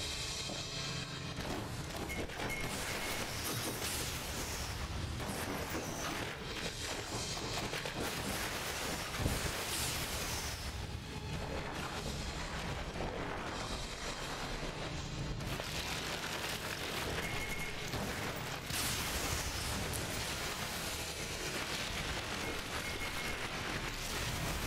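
A shotgun fires with loud blasts now and then.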